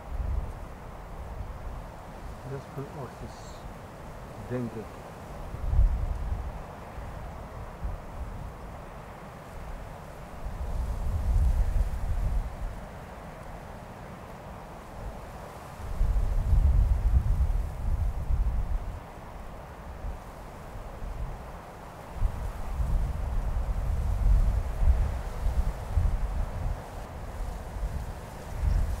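Wind blows in low gusts outdoors.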